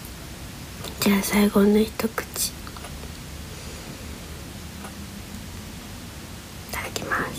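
A young woman speaks softly and playfully, close by.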